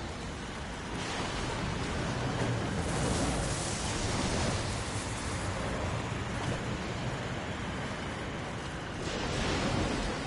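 Electric sparks crackle and sizzle.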